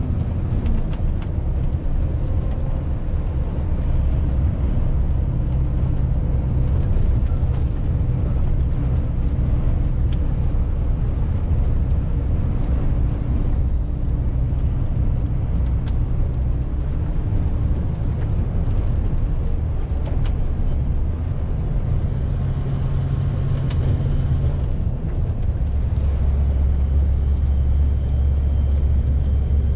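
A truck's diesel engine rumbles steadily from inside the cab.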